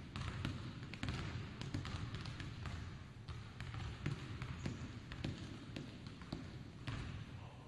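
Sneakers squeak and thump on a hardwood floor in a large echoing gym.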